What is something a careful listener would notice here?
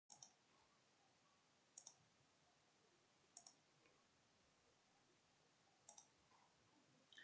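A young woman speaks calmly and quietly into a computer microphone.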